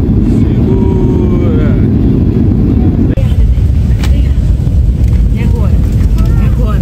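A plane's engines roar loudly as it rolls along a runway.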